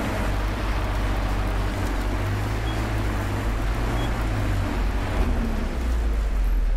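Tyres roll over a rough road with a constant noise.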